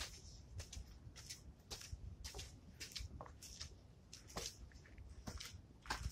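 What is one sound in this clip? Footsteps crunch and scuff on concrete steps.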